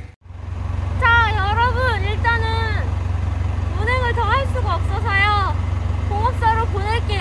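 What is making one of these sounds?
A young woman speaks close by in a lively, sing-song voice.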